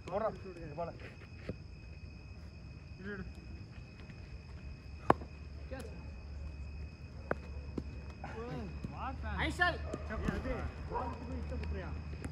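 Young men call out and shout to each other outdoors.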